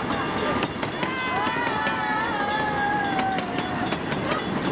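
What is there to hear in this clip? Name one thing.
A crowd of men and women calls out and cheers from the passing train.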